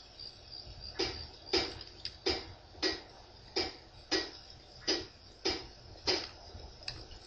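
A game menu clicks in short, even ticks as items are scrolled.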